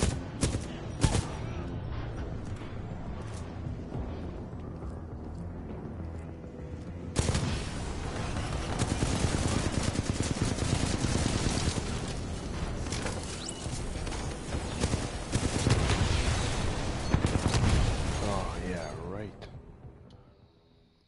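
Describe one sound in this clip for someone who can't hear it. A man talks into a headset microphone with animation.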